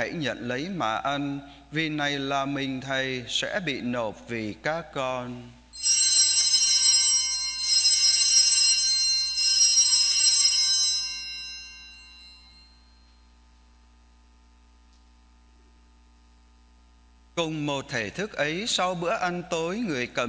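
A man chants in a steady voice through a microphone, with some echo.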